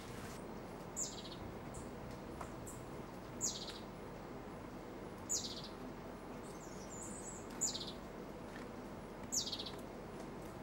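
A bird gives short, sharp calls that drop in pitch, repeated every few seconds.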